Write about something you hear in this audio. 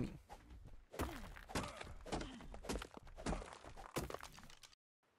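A stone tool strikes rock with sharp knocks.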